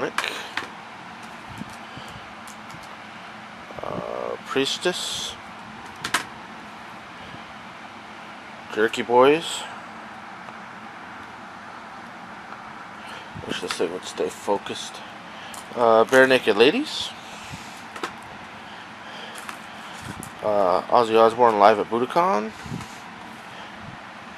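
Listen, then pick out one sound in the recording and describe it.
Plastic disc cases clack as they are set down on a stack.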